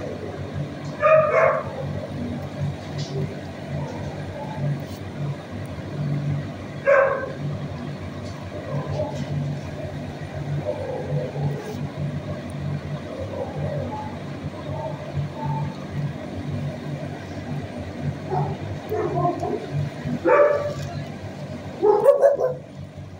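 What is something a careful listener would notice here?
A dog barks sharply nearby, a few times.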